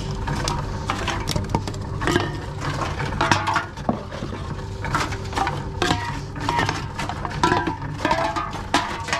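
Empty cans and bottles clatter and clink in a basket.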